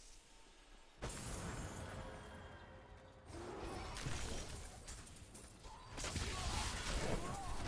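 Game spell effects crackle and burst in combat.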